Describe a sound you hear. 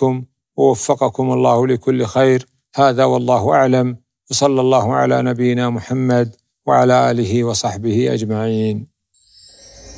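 A man speaks calmly and steadily into a close microphone.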